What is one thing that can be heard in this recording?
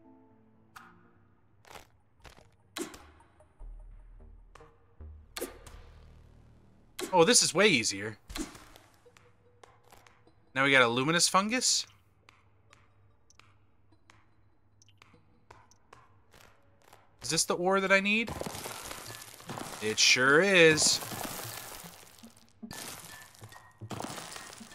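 Short electronic game sound effects blip and click.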